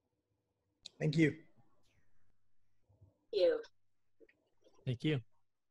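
A man speaks in short, brief phrases over an online call.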